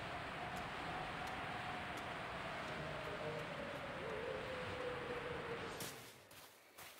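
Wind rushes steadily past during a flight.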